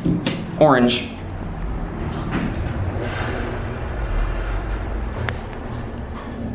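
A traction elevator car rumbles as it travels.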